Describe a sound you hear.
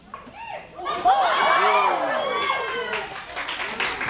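A crowd of children cheers loudly.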